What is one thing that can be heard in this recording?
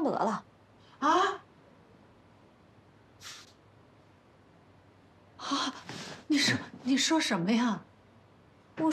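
An elderly woman exclaims in alarm, her voice rising.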